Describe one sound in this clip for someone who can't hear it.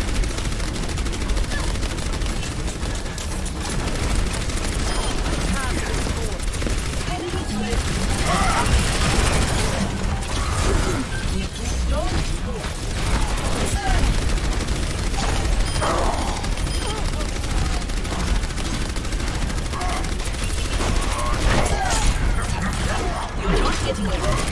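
A game weapon fires rapid bursts of shots.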